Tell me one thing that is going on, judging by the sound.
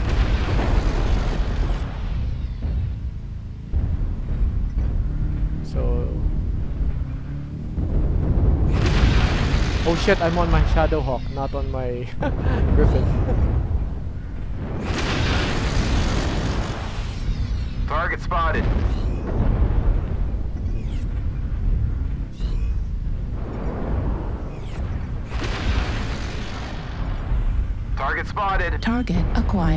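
A heavy machine rumbles and thuds steadily.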